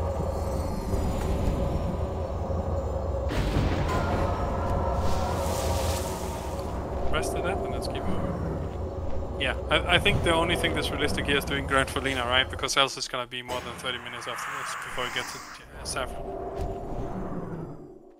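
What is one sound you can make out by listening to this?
Spells and weapons clash and crackle in a busy battle.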